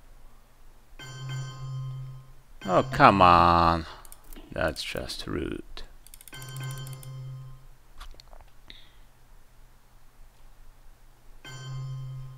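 Short electronic chimes sound from a computer game.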